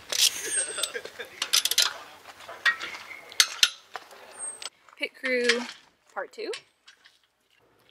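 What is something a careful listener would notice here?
A lug wrench clicks and rattles against wheel nuts.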